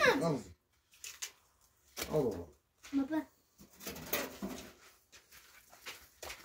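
Gravel crunches and rattles as hands scoop it.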